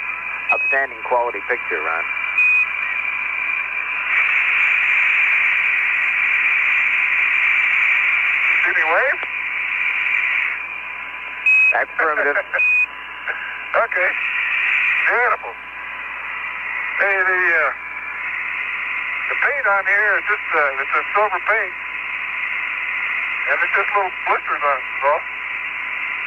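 A man speaks calmly over a crackly, hissing radio link.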